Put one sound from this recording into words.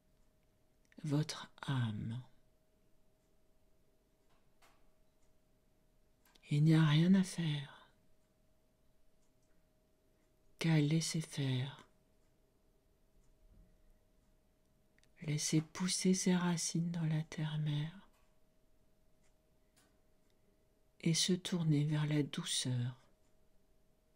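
An elderly woman speaks slowly and calmly in short phrases with long pauses, close to a microphone.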